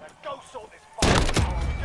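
A pistol fires loudly.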